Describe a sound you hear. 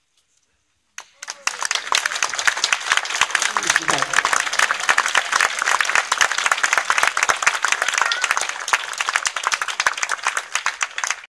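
An outdoor audience breaks into loud applause.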